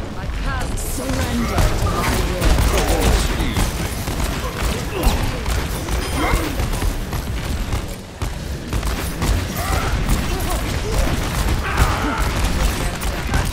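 Video game explosions and energy blasts boom and crackle.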